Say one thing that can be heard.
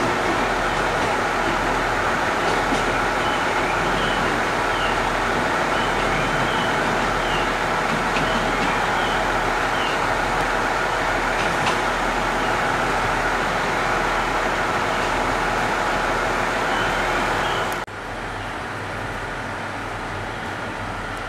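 A train rumbles slowly along the tracks as it approaches.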